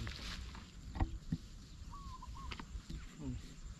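Small objects drop into a plastic bucket with hollow knocks.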